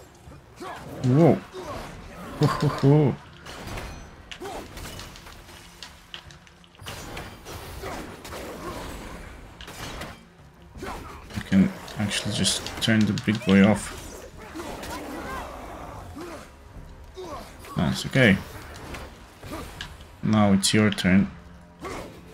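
Heavy weapon blows strike with loud thuds and clangs.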